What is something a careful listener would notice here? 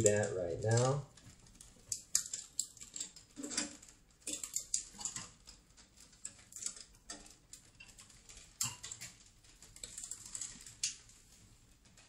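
Hand-operated machine parts click and clatter.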